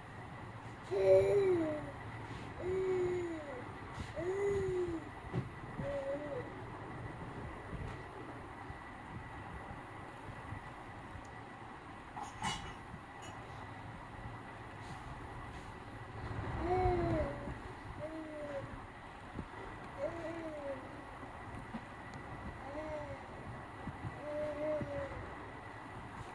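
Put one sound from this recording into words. A baby coos and babbles close by.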